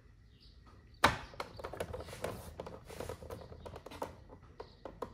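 Hard plastic parts click and knock as they are handled.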